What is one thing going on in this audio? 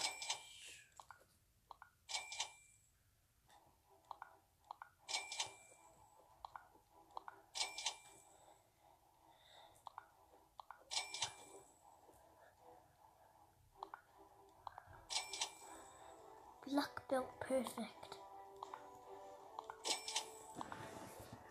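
A bright game chime rings out again and again.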